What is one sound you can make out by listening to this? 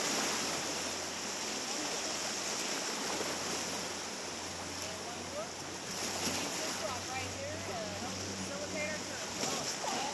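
River rapids rush and splash loudly close by.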